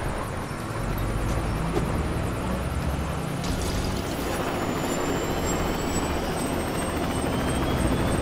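A helicopter's rotor whirs steadily.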